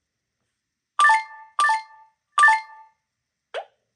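Bright chiming game sound effects ring out three times in quick succession.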